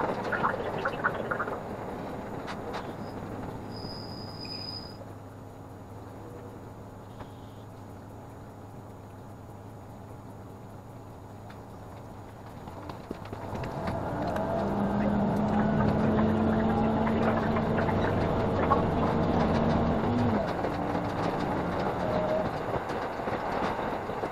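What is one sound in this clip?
A train rumbles along the tracks, heard from inside a carriage.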